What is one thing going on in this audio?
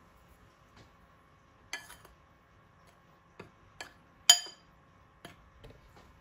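A fork clinks against a glass bowl while whisking.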